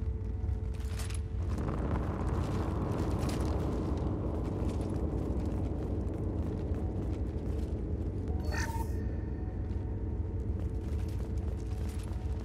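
Heavy armoured footsteps thud on a hard floor.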